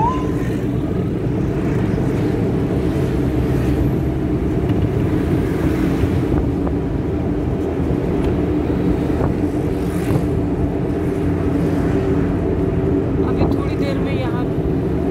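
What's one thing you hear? A vehicle's engine rumbles steadily from inside as it drives along.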